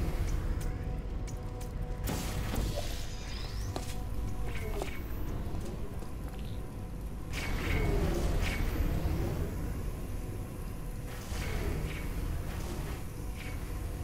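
A laser beam hums steadily.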